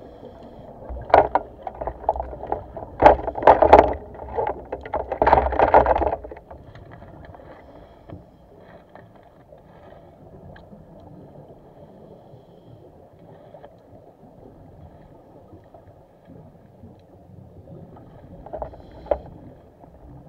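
Scuba bubbles gurgle and rush loudly in bursts underwater.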